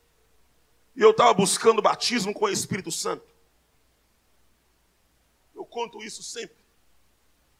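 A man preaches with passion into a microphone over loudspeakers.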